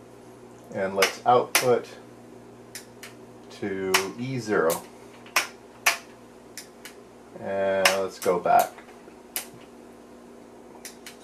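Toggle switches click sharply, one after another.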